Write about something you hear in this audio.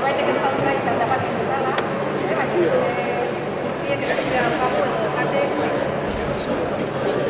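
A young man speaks into a microphone over loudspeakers in a large echoing hall.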